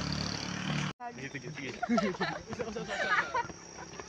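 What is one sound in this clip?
Teenage boys talk and laugh close by.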